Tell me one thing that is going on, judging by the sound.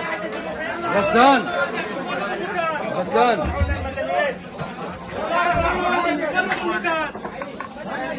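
Several men shout urgently close by.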